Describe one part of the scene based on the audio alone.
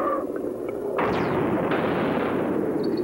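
A dolphin lands on a rock ledge with a heavy thud.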